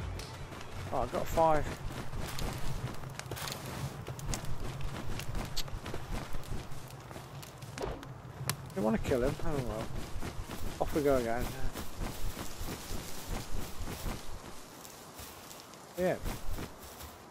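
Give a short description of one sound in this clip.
Small creatures let out short, squeaky, wavering cries.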